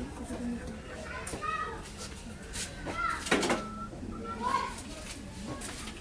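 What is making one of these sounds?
Metal pots clatter and clink.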